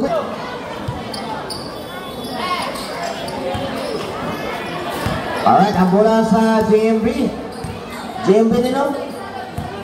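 A crowd shouts and cheers loudly.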